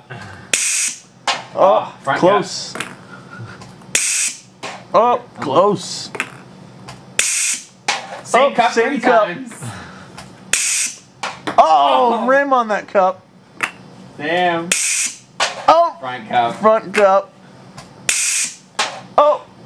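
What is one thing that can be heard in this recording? A small plastic ball bounces lightly off the floor.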